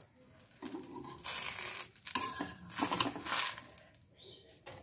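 A metal spatula scrapes across a pan.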